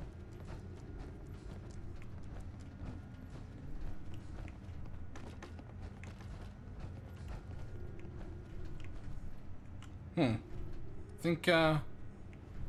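Heavy armoured footsteps thud and clank steadily.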